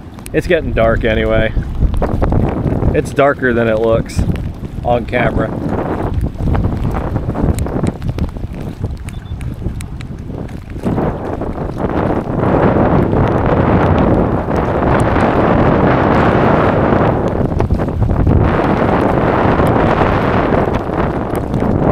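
Choppy water splashes against a small boat's hull.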